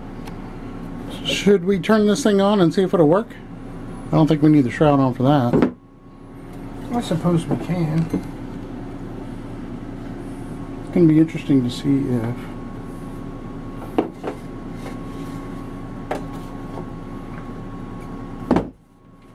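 Hands knock softly against an air compressor's cord and case.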